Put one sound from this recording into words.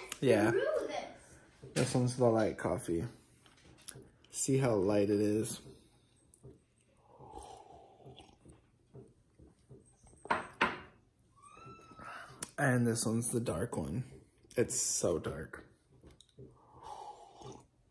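A young man sips loudly from a mug.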